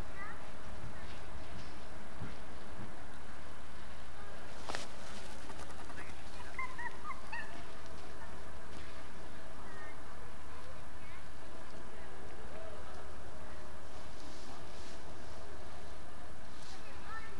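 An elephant's heavy feet shuffle and thud softly on dry ground.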